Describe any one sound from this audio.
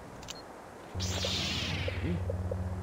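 A lightsaber ignites with a sharp hiss.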